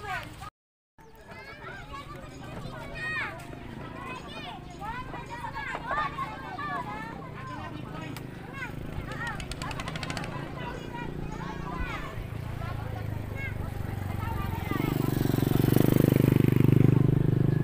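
Several people chat a short way off outdoors.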